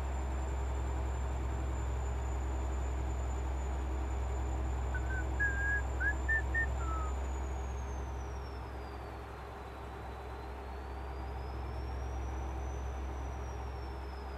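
Tyres roll on asphalt with a steady rumble.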